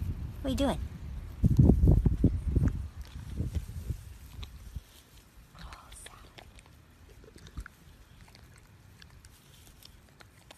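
A dog munches and tears at grass close by.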